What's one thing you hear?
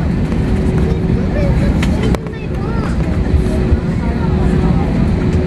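Jet engines rumble steadily, heard from inside an aircraft cabin as the plane rolls along.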